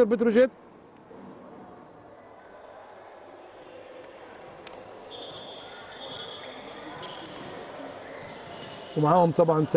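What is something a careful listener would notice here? A small crowd murmurs in a large echoing hall.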